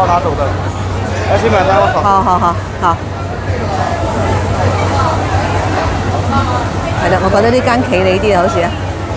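Several people talk loudly nearby in a busy crowd.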